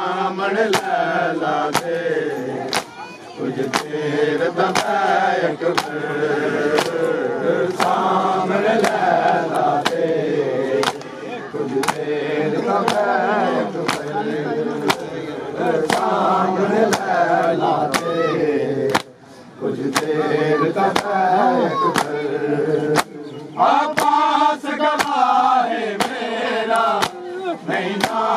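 Bare chests are slapped by hand in a steady, even rhythm.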